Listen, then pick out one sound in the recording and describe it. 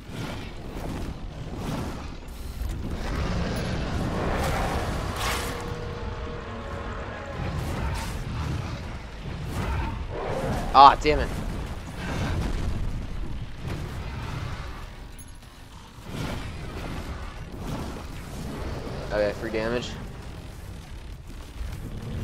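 Heavy blows and energy blasts thud and crackle.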